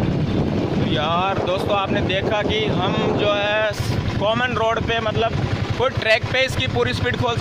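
A man speaks with animation close to the microphone, outdoors.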